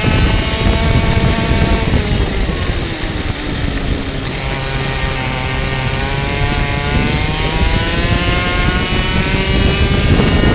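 A kart engine buzzes loudly close by, its pitch dropping and then rising again.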